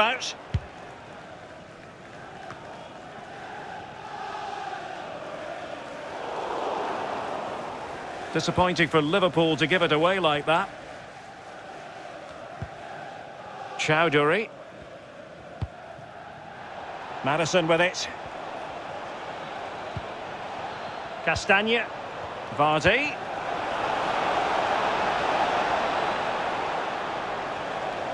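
A stadium crowd roars steadily and swells louder near the end.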